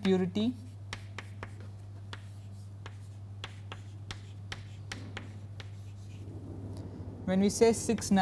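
Chalk taps and scratches on a chalkboard.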